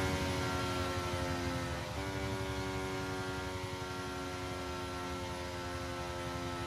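A racing car engine whines steadily at high revs, dipping briefly at a gear change.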